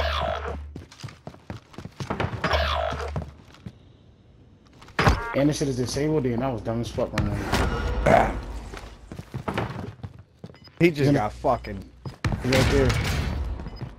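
Footsteps thud on wooden stairs and floors.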